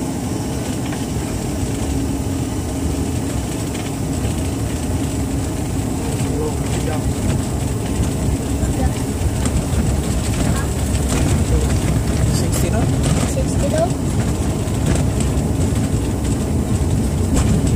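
Wheels rumble and thump over a runway.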